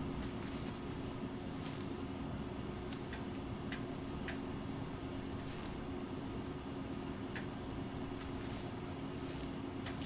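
Leaves rustle as someone pushes through dense plants.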